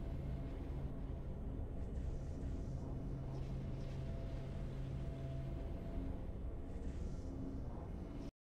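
Triumphant video game music plays with a low, steady drone.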